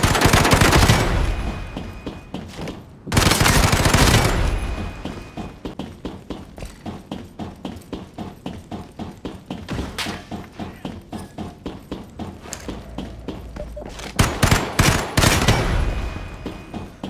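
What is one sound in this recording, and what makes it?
Loud gunshots boom and echo.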